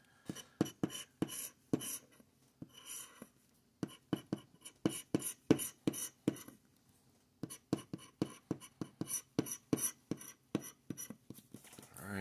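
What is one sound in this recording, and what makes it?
A plastic tool scratches quickly across a card in short, rasping strokes.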